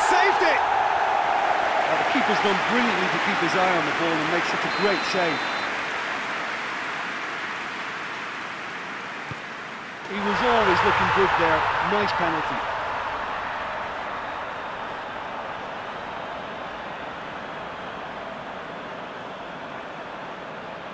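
A large stadium crowd roars and cheers, swelling suddenly into a loud cheer.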